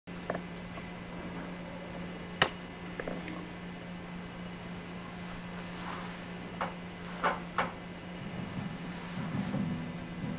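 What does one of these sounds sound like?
A classical guitar is played softly by hand.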